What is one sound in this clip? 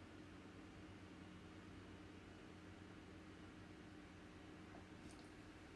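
A person gulps water from a bottle, swallowing quietly close by.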